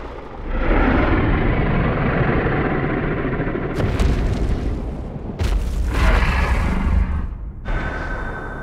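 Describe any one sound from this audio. Flames roar and crackle loudly.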